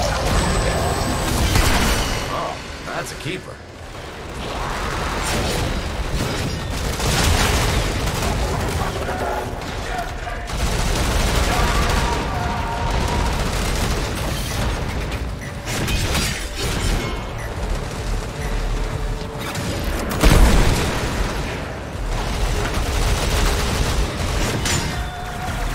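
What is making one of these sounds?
Gunfire and energy blasts crackle and boom.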